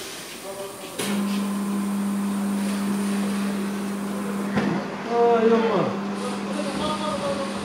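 A tyre changing machine motor hums steadily as it turns a wheel.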